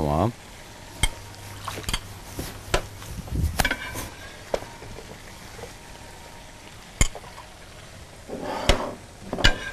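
Cooking utensils clink and tap against a pan.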